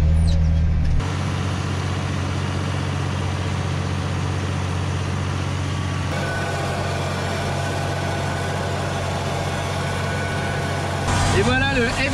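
Farm machinery rattles and whirs as it works the soil.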